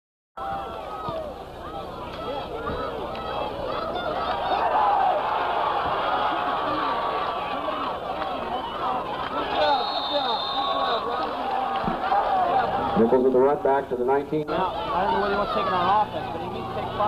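A crowd of spectators cheers and chatters outdoors, close by.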